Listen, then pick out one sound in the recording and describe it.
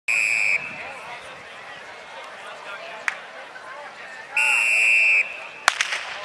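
A referee's whistle blasts sharply twice.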